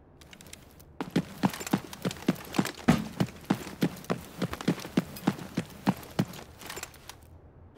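Footsteps tread quickly and evenly on a hard floor.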